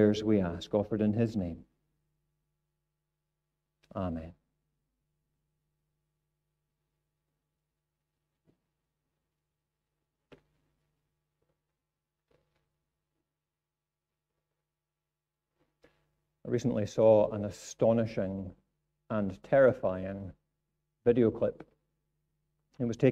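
A middle-aged man speaks calmly into a microphone, with long pauses.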